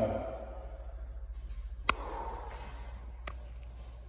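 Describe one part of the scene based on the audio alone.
Feet step on the rungs of a metal ladder.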